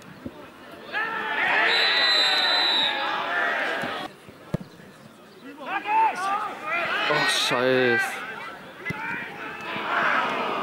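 A crowd of spectators cheers loudly outdoors.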